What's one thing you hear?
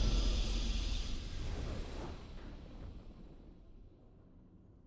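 A triumphant game fanfare rings out and slowly fades away.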